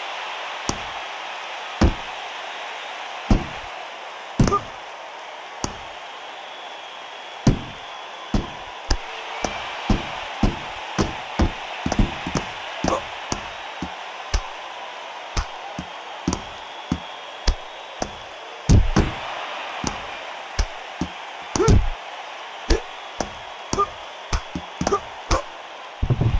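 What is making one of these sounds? Boxing gloves land heavy punches with dull thuds, again and again.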